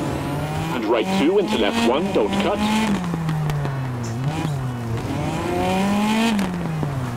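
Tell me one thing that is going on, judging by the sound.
A rally car engine revs hard, rising and falling in pitch as the gears shift.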